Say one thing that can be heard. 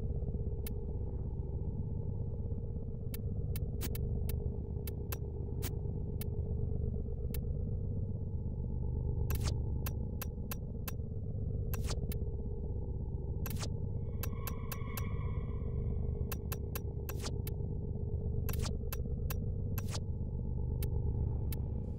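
Short interface clicks tick as menu items are selected.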